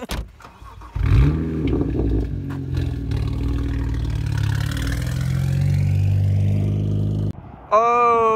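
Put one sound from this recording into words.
A car engine rumbles loudly nearby.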